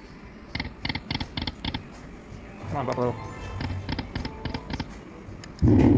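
A slot machine plays quick electronic chimes as its reels spin and stop.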